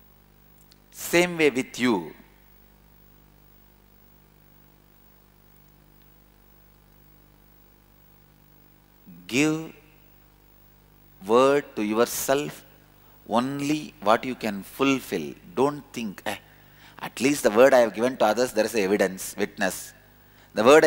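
A man speaks calmly into a close microphone, with long pauses.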